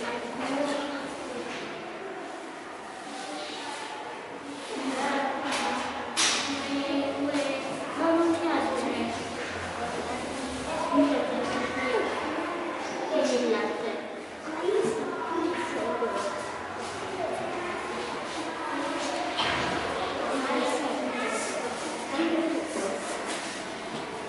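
Young children talk softly to each other in an echoing hallway.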